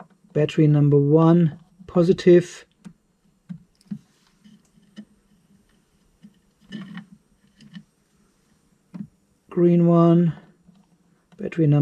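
A small screwdriver tightens screws with faint scraping clicks.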